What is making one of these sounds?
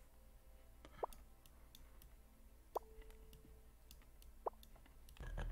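Short soft clicks sound as pieces snap into place.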